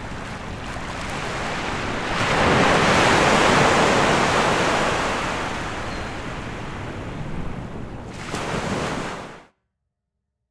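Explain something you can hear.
Wind rushes through tall grass by the sea.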